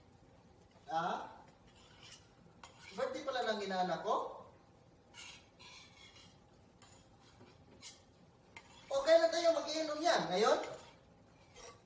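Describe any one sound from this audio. A young woman speaks with animation nearby.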